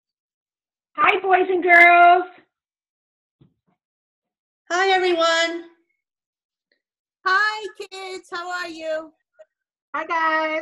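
Several women speak in turn, cheerfully, over an online call.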